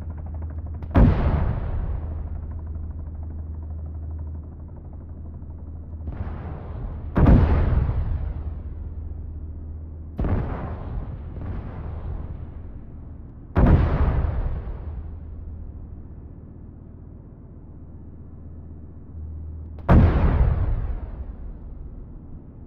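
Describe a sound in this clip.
Heavy cannon shots boom loudly, each followed by a rolling echo.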